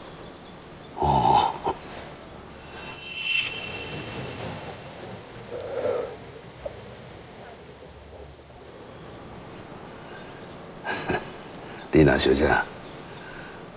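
An elderly man speaks in a relaxed voice close by.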